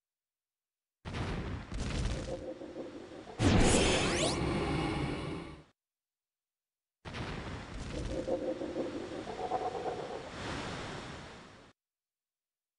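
Magic spells burst and crackle with whooshing blasts.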